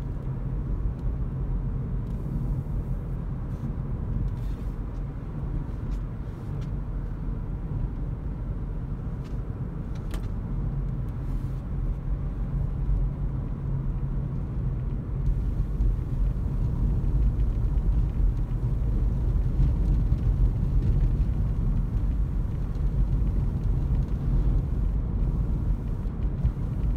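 A car's engine hums low and steady from inside the cabin.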